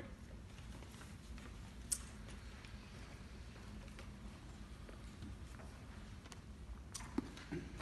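Paper rustles as pages are turned.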